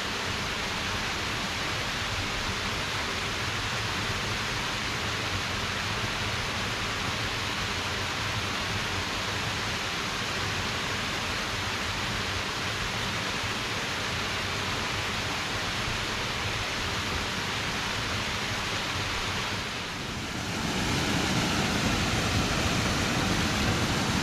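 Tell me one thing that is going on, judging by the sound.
Water pours steadily over a small weir and splashes into a pool.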